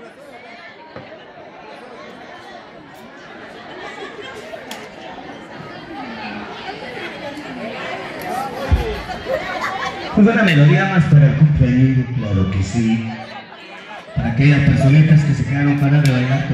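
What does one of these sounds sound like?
A crowd of adults chatters indoors.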